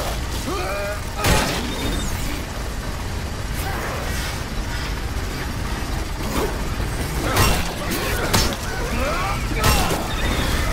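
Heavy blows and thuds land during a fight.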